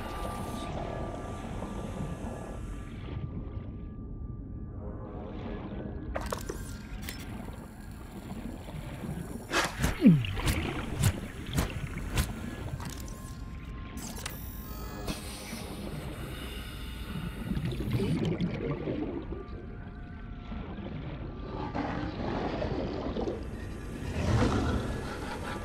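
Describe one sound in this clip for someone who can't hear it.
Deep underwater rumble drones steadily.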